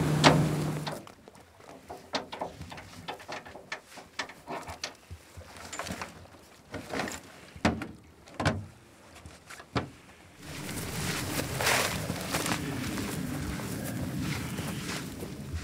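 Footsteps crunch on dry dirt and brush.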